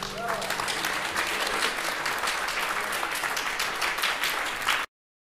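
An acoustic guitar is strummed through a loudspeaker.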